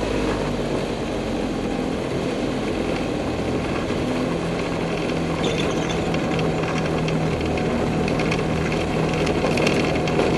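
Tyres rumble over a rough dirt strip.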